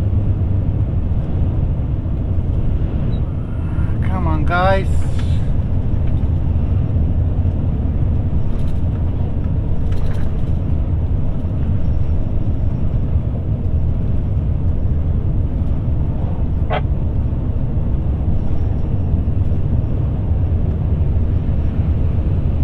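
Tyres and an engine rumble steadily on a road.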